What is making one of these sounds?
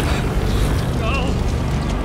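A man shouts out in alarm.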